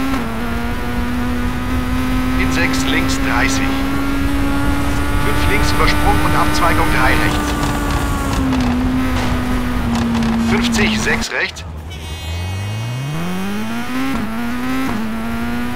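A rally car engine roars at high revs, cuts out briefly, then revs back up.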